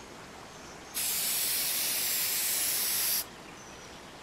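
A spray hisses steadily, then stops abruptly.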